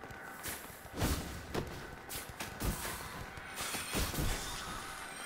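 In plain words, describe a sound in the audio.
A sword swings and strikes with heavy thuds.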